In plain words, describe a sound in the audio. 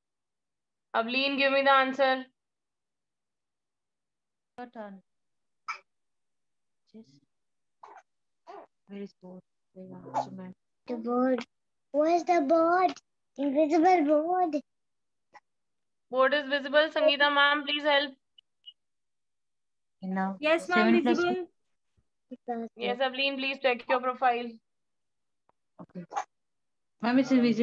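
A young girl speaks close to a phone microphone, in short, lively bursts.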